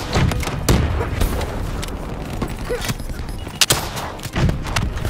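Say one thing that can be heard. Gunfire and explosions boom nearby.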